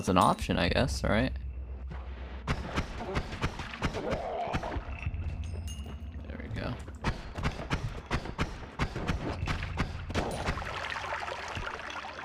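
Rapid sharp gunshots pop from a video game.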